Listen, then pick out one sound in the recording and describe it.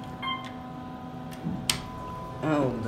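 A button clicks when pressed.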